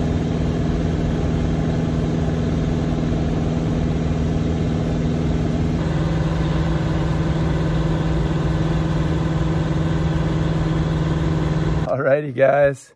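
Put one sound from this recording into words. A small plane's engine drones steadily with a loud propeller hum.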